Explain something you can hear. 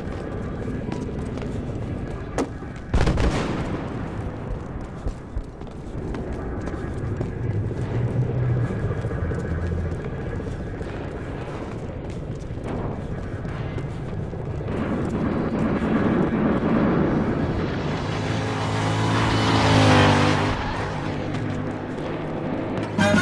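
Footsteps run quickly across a hard floor in an echoing space.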